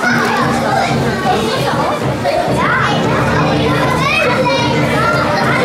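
A crowd of children shouts and cheers excitedly in an echoing hall.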